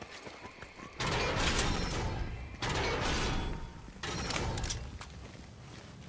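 Chests burst open with a bright chime.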